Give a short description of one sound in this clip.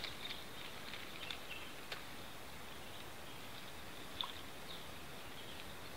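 A fishing reel clicks as line is wound in.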